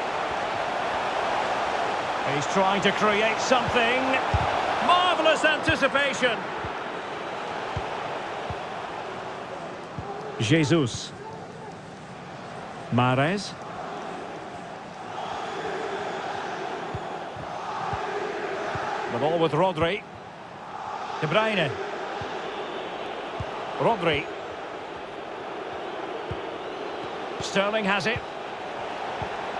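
A stadium crowd roars and murmurs steadily.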